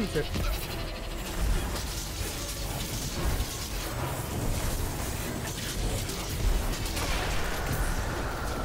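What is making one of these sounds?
Energy blasts crackle and boom in rapid bursts.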